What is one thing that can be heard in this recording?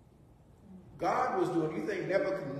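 An older man speaks calmly and clearly.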